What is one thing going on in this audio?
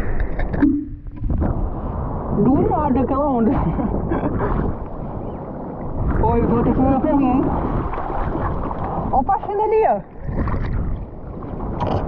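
Hands paddle and splash through water.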